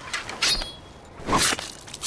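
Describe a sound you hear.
A blade swishes sharply through the air.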